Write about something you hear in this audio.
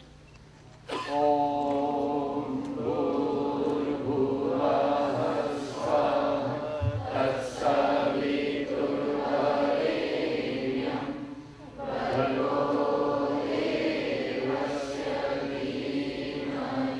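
A harmonium plays a steady drone.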